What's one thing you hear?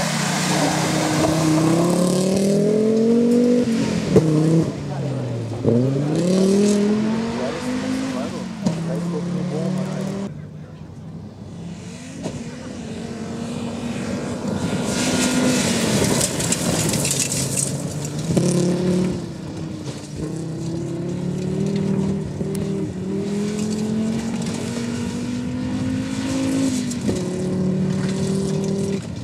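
A rally car engine roars and revs up and down as it speeds past.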